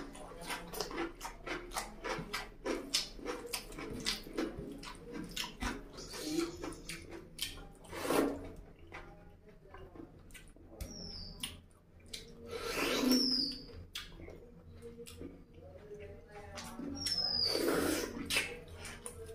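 A man chews food noisily with wet smacking sounds close to a microphone.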